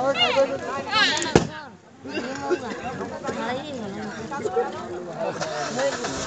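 Several women and men talk and chatter close by in a lively crowd.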